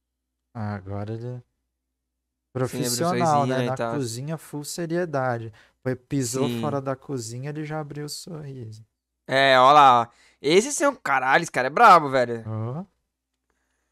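A young man talks with animation through a headset microphone.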